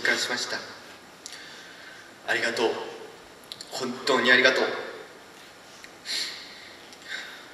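A young man speaks slowly and formally into a microphone in an echoing hall.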